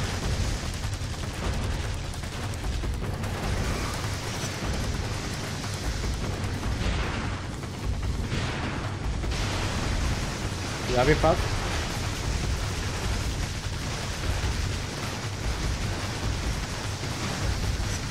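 Gunfire and blasts ring out in a game.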